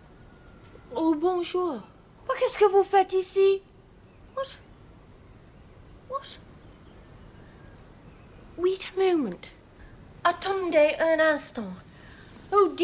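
Another young woman speaks in a hushed, anxious tone, close by.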